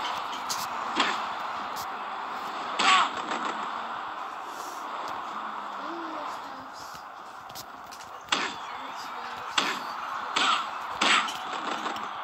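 Bodies thud heavily onto a ring mat.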